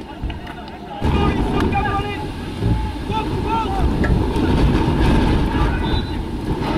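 A small crowd of spectators cheers and claps outdoors.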